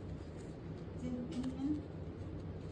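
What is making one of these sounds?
A cloth mask rustles close by as it is pulled over a face.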